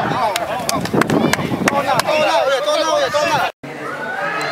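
A group of young men shout and chant together in celebration.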